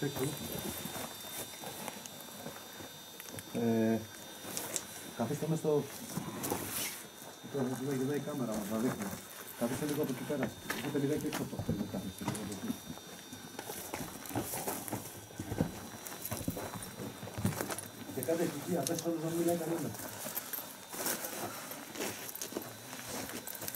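Footsteps crunch over loose rubble.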